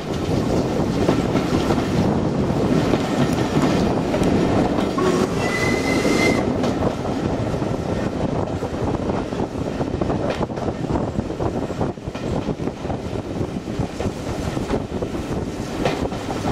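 A train rumbles and clatters steadily along the rails.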